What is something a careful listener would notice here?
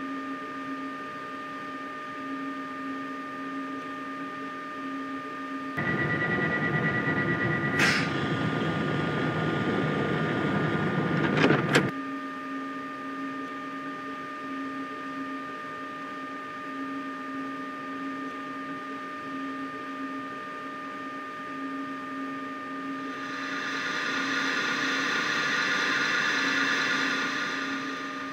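A locomotive's electrical equipment hums steadily.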